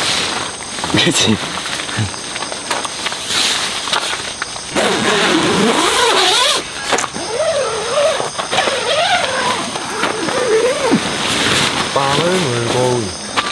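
Tent fabric rustles as it is handled.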